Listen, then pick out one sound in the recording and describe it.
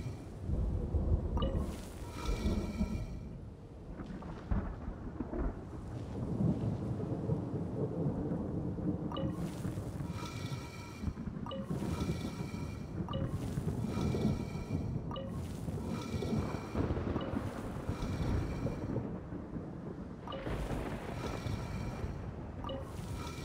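A heavy stone block grinds as it turns.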